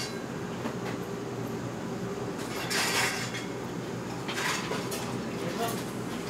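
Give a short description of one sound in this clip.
Chopsticks tap against a plate.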